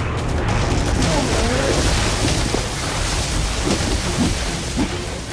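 Magic blasts crackle and whoosh loudly.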